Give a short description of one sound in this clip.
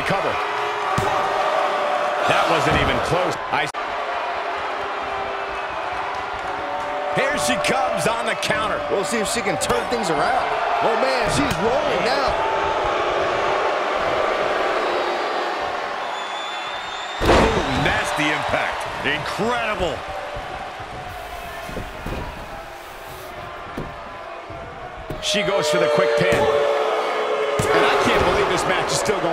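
A large crowd cheers and murmurs in a big echoing arena.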